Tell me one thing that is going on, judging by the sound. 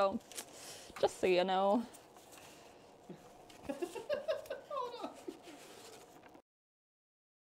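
A young woman talks and laughs cheerfully close by.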